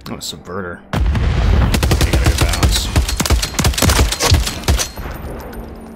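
Gunfire rattles in rapid bursts in a video game.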